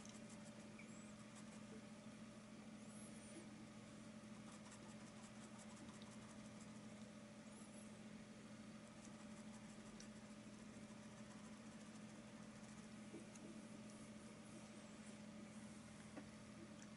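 A paintbrush brushes softly across a canvas.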